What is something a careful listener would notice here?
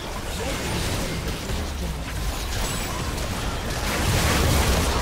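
Magic blasts and spell effects crackle and boom in a hectic video game battle.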